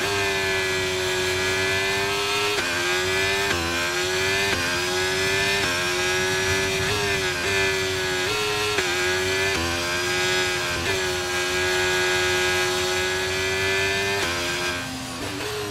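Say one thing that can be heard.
A racing car engine whines at high revs, shifting gears up and down.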